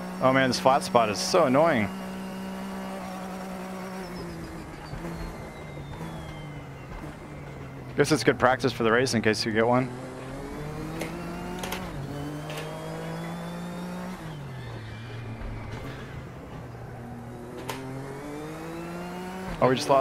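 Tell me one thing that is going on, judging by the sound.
A racing car engine drones, its pitch rising and falling with gear changes.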